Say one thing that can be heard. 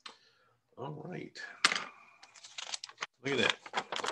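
A sheet of paper rustles as it is turned over.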